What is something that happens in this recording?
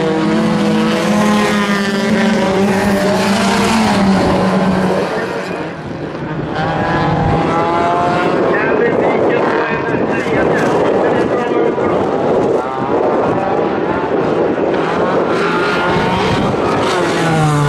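Race car engines roar and rev loudly.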